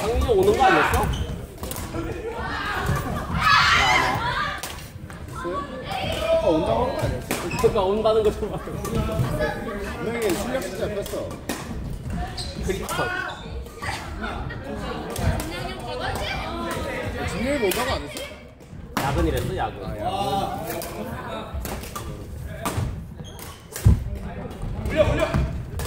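Badminton rackets hit a shuttlecock with sharp pops, echoing in a large hall.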